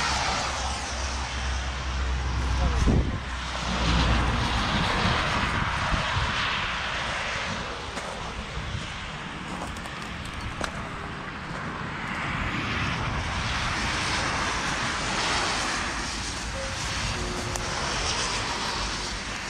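Wind blows outdoors and buffets the microphone.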